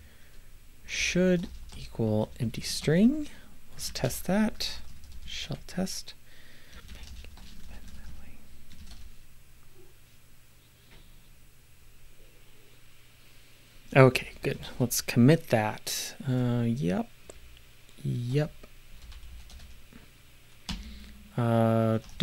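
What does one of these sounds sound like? A middle-aged man talks calmly into a nearby microphone.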